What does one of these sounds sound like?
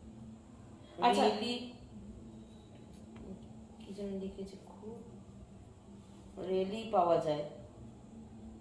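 A woman speaks in short phrases close by.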